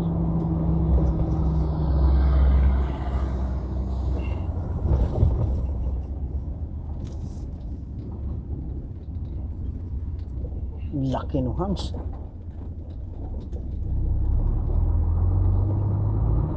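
A truck's engine rumbles steadily from inside the cab.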